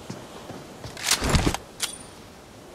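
A loud gunshot bangs close by.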